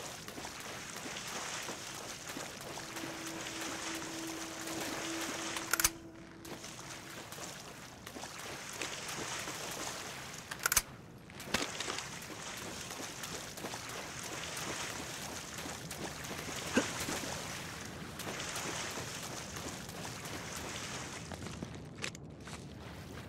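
Footsteps splash loudly through shallow water.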